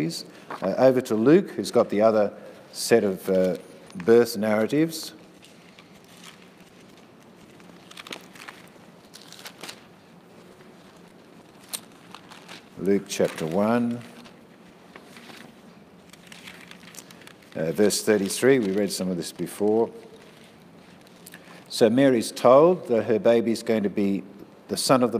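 An elderly man speaks calmly in pauses, in a room with some echo.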